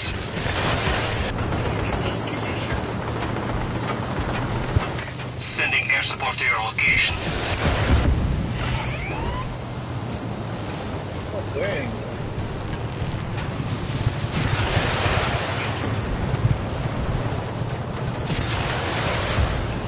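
Rockets whoosh past.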